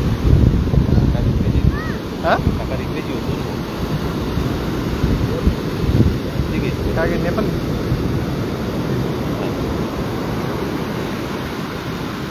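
Waves break and wash up the shore.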